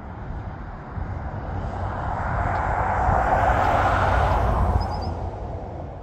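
An Audi RS4 cruises past on an asphalt road.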